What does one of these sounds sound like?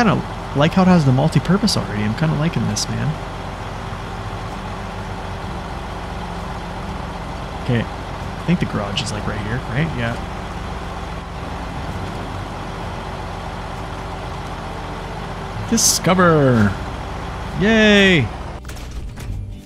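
A heavy truck engine rumbles steadily as the truck drives.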